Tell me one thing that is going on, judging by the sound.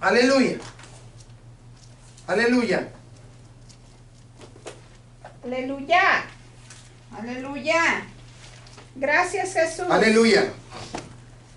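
An elderly man speaks calmly in short phrases through a microphone.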